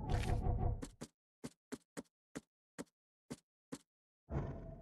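Menu clicks tick quickly, one after another.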